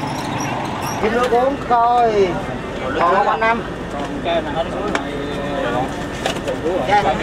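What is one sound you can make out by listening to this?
An elderly woman talks and laughs close by.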